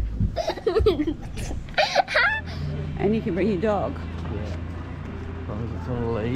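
A young girl speaks excitedly close by.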